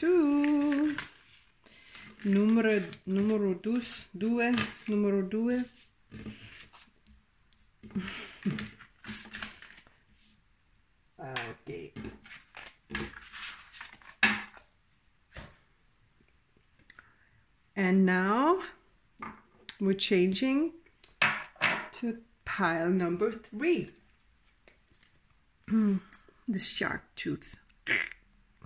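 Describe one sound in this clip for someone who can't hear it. Cards rustle and tap as they are shuffled and laid down.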